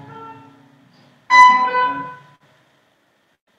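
Several acoustic guitars play a final chord together that rings out and fades into silence.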